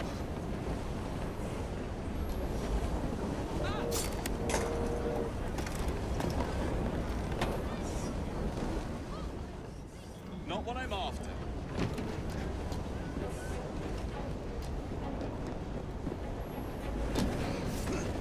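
Footsteps thud on a wooden wagon roof.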